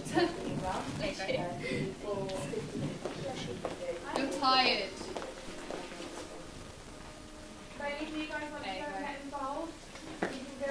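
Teenage girls speak and call out with animation in a room with a slight echo.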